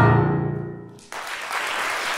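A choir sings in a large hall and the final chord stops abruptly.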